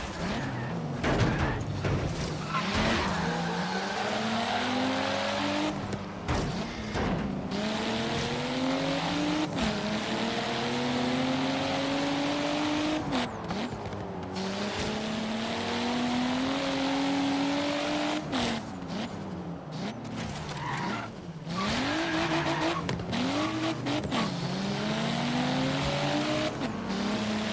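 A sports car engine accelerates hard, shifting up through the gears.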